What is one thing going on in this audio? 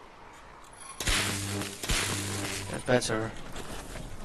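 Loud whooshing game effects rush past as a figure dashes across snow.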